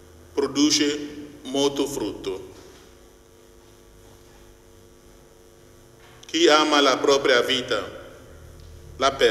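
A middle-aged man reads aloud calmly into a microphone in a room with a slight echo.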